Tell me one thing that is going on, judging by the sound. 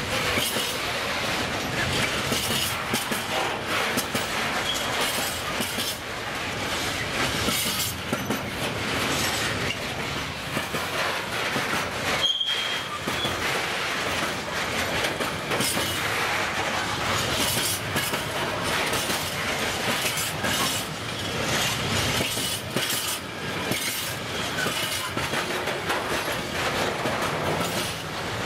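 A long freight train rumbles past close by, wheels clattering over the rail joints.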